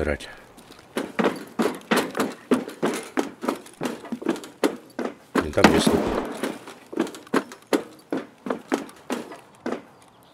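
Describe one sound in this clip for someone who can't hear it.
Footsteps clang on metal stairs at a steady pace.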